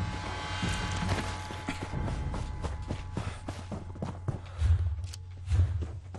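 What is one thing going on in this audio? Footsteps crunch over grass and dirt.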